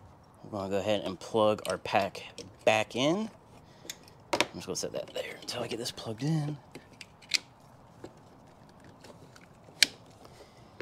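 Plastic connectors click and rattle as they are handled.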